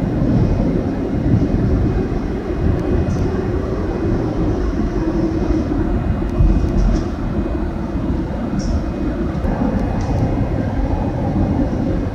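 A subway train rumbles loudly through a tunnel.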